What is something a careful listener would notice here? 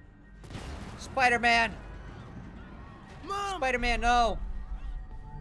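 A young man shouts in distress.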